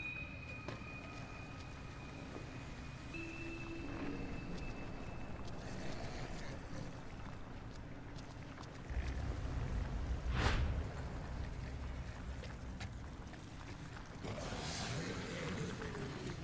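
Footsteps shuffle slowly over rough ground.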